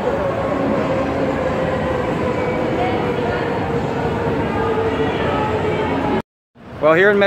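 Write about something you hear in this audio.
A crowd murmurs and chatters in a busy covered street.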